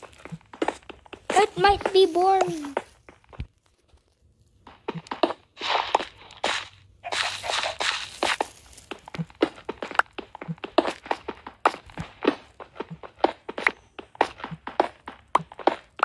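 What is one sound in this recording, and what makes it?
Stone blocks are chipped and break with quick, rhythmic crunching taps.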